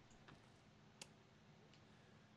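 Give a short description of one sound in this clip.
A button clicks as it is pressed.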